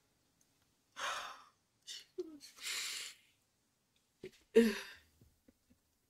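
A young woman gasps and cries out in alarm into a close microphone.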